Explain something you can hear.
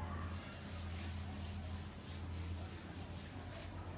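A hand rubs across a sheet of paper on a wall.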